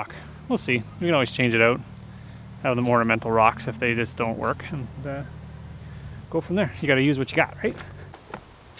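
A man talks casually outdoors.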